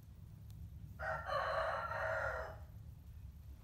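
A rooster crows loudly.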